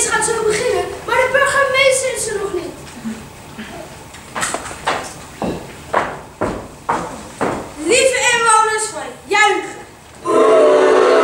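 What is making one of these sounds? A man speaks with animation on stage, heard in an echoing hall.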